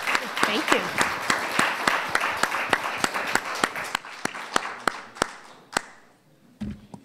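An audience applauds in a large hall, gradually dying down.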